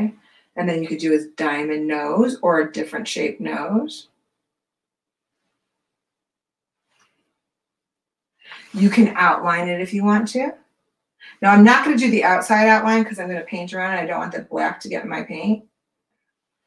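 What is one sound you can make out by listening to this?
A woman talks calmly and clearly into a close microphone, pausing now and then.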